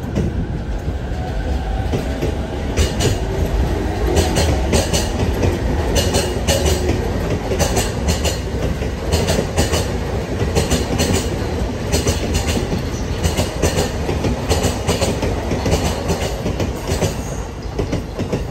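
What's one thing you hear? A train rumbles past close by at speed.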